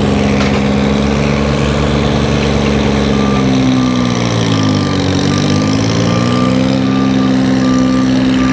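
A heavy machine's diesel engine rumbles loudly nearby, its pitch dipping and rising.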